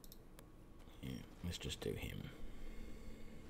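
A middle-aged man speaks briefly and calmly into a microphone.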